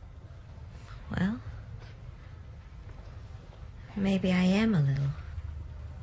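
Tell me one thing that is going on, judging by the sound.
A woman speaks softly and wearily.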